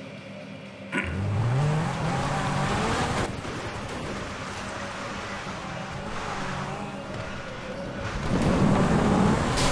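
A car engine revs hard and rises in pitch.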